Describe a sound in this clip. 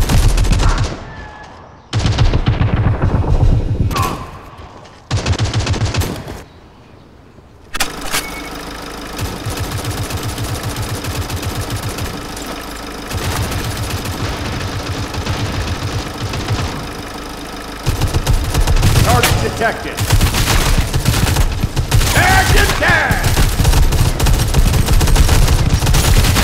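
Rifle fire rattles in rapid bursts.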